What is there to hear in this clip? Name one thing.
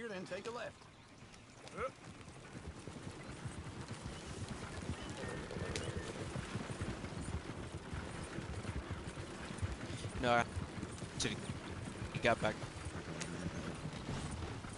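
Wagon wheels rumble and rattle over a dirt track.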